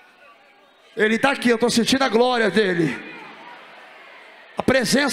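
A man speaks loudly and with feeling through a microphone in a large echoing space.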